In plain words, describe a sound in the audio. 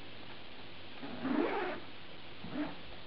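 A sleeping bag rustles as a person wriggles inside it.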